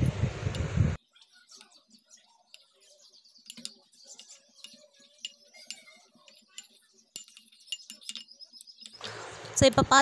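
A metal spoon scrapes and clinks against a ceramic bowl while stirring.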